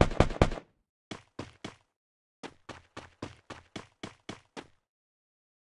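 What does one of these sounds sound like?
Footsteps run over grass.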